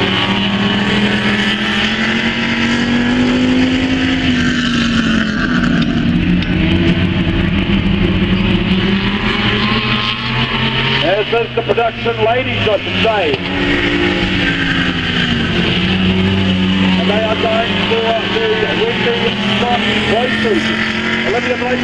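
Race car engines roar and drone around a dirt track outdoors.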